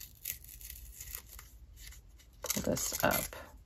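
Paper rustles as a sticker is pressed down.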